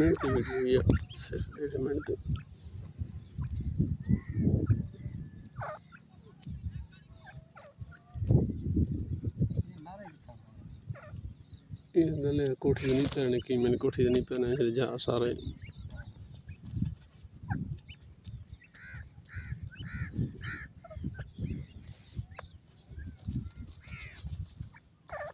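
Small birds scratch and peck in dry dirt.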